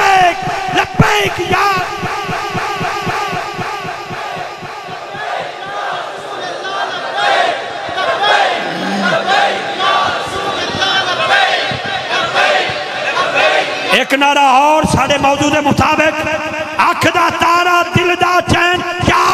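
A man sings with feeling through loudspeakers in a large echoing space.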